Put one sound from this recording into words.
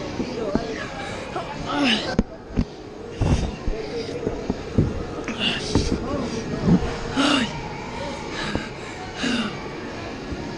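A young boy shouts and calls out excitedly, close by.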